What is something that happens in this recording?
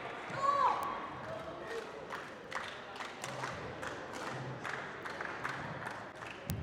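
A crowd of spectators murmurs in a large echoing hall.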